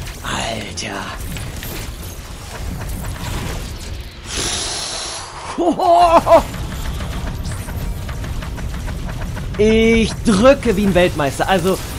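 Sci-fi energy blasts zap and whoosh in quick bursts.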